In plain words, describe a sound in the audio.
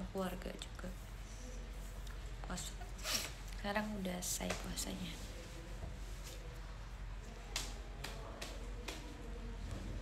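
A young woman talks quietly and casually close to a microphone.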